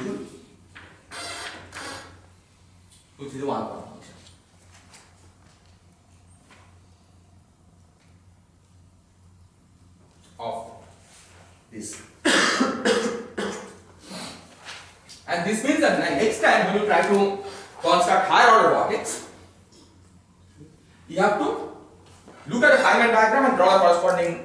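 A man lectures with animation in a large echoing room.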